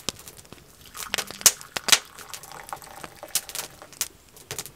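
Hot liquid pours from a kettle into a wooden cup.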